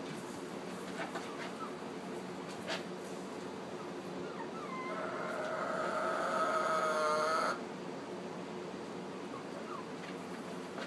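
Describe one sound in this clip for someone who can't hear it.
Hens cluck and make a drawn-out call nearby.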